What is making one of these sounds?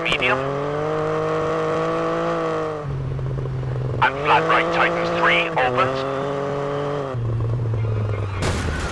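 A rally car engine roars and revs, shifting gears.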